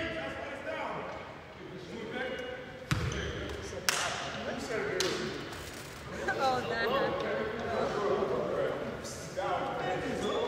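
Men's voices call out and chatter across an echoing gym.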